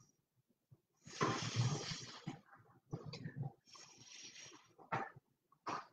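A stick scrapes softly across a painted surface.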